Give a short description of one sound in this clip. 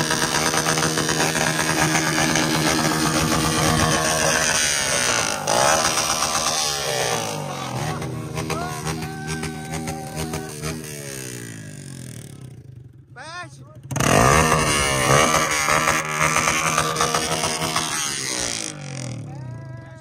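A motorcycle engine idles loudly close by.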